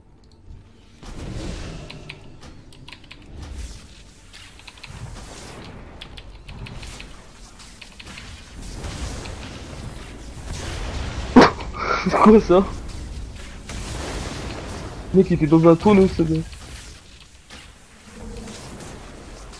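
Magic spells crackle and burst during a fight.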